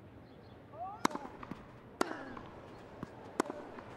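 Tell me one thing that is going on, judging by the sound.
A tennis racket sharply strikes a ball, back and forth.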